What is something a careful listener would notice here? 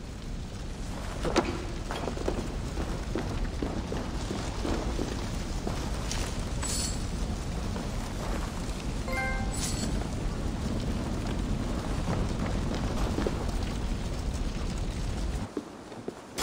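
Footsteps walk over a stone floor.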